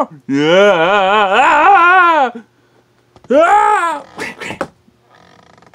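A man makes playful, sing-song character voices close by.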